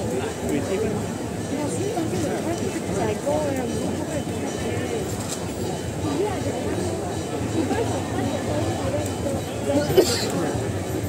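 A large crowd of men and women talks and calls out all around.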